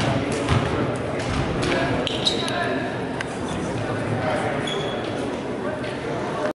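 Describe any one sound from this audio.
A crowd of boys chatters and calls out in a large echoing gym.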